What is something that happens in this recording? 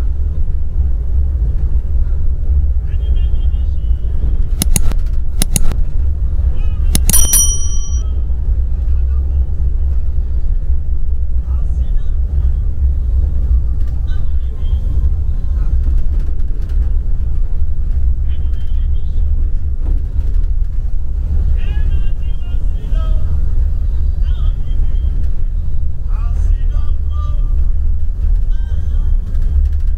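Tyres roll over a rough dirt road.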